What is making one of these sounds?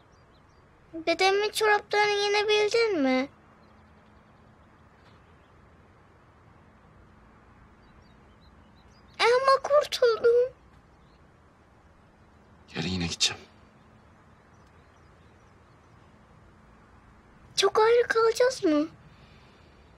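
A young girl speaks earnestly close by.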